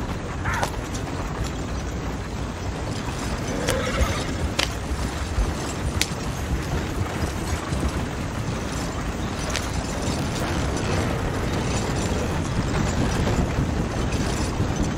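Horse hooves clop steadily on the ground.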